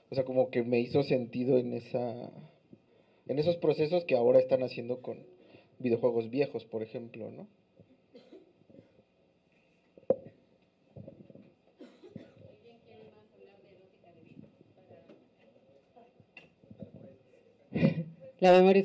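A young woman speaks calmly through a microphone, with pauses.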